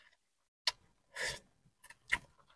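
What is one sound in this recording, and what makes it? A young woman bites into crab meat with a wet crunch.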